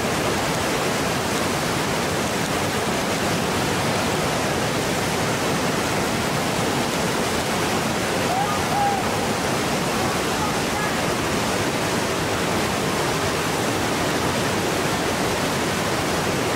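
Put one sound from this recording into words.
Whitewater rapids roar and crash loudly and steadily.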